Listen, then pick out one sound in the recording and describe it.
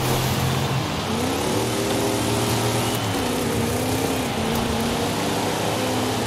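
Tyres screech as a car slides through a bend.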